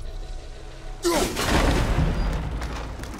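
A heavy axe strikes with a loud, crunching impact.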